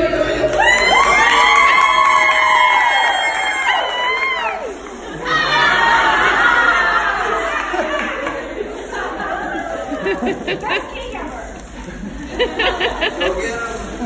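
People chatter excitedly nearby.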